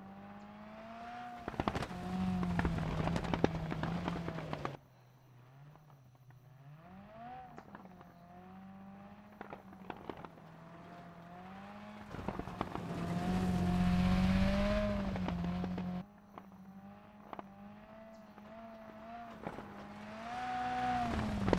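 A rally car engine revs hard, rising and falling in pitch as it changes gear.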